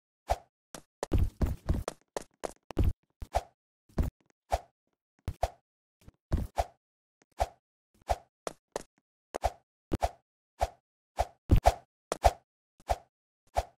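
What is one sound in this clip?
Footsteps knock on wooden ladder rungs in a quick, uneven rhythm.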